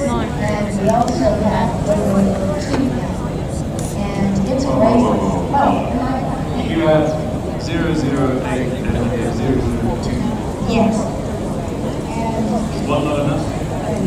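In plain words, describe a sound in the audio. Men and women chatter nearby in a crowd outdoors.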